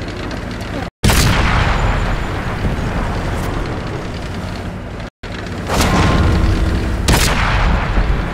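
A tank cannon fires with loud booming blasts.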